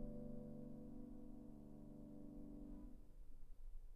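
A piano plays a held chord that rings and then stops.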